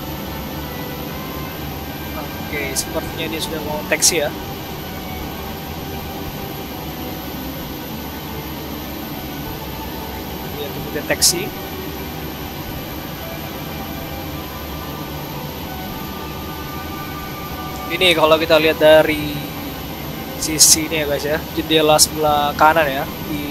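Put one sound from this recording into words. A jet engine hums steadily at idle nearby.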